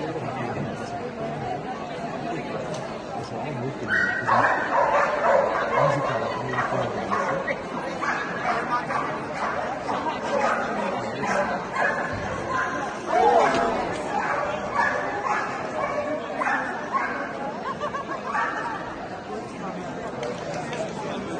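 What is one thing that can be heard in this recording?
A large crowd murmurs in a big echoing arena.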